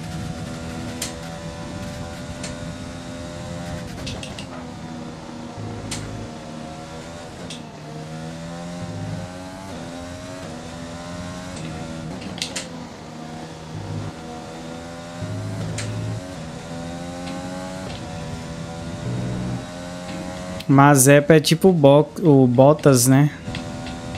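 A racing car engine whines and shifts gears as it speeds along.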